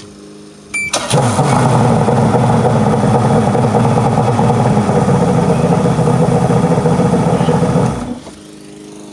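An outboard boat engine starts and runs with a loud, rough, steady roar, then stops.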